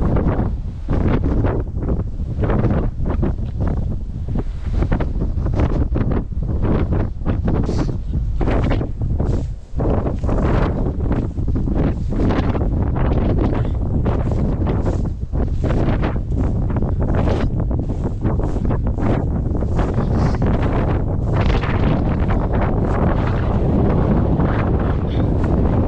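Strong wind buffets the microphone with loud gusts outdoors.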